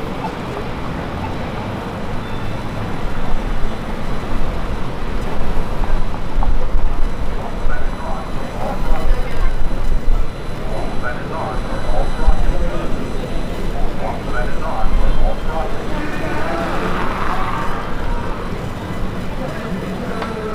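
Traffic hums steadily on a busy street.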